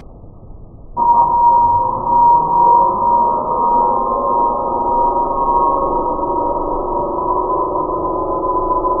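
Small electric motors drone at a low, slowed-down pitch.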